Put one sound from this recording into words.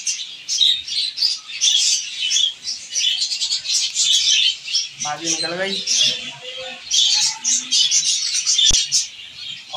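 Small birds chirp and cheep in quick, high bursts.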